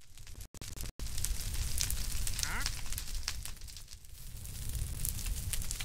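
Fire crackles and pops steadily.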